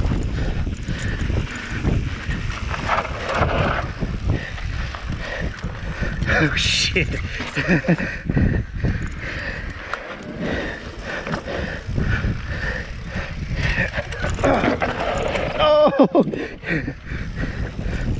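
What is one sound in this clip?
A bicycle frame rattles and clanks over bumps.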